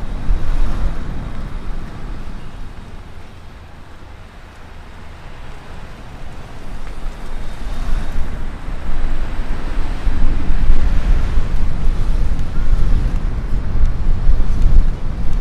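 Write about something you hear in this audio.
Passing cars swish by close at hand.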